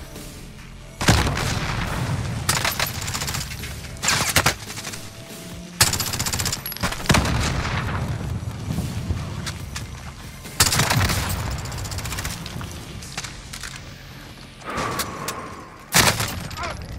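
Gunfire bursts out in loud rapid volleys with a rumbling echo.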